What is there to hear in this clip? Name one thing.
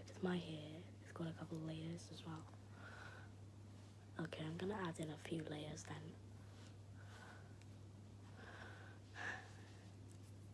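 A young girl speaks softly and close up.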